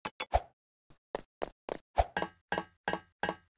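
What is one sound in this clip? Footsteps clang on a metal ladder while climbing.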